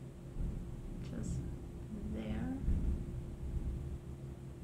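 A woman speaks briefly and softly, close by.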